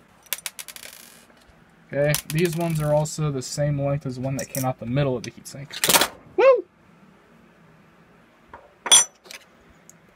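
Small metal and plastic parts click and clatter as they are handled.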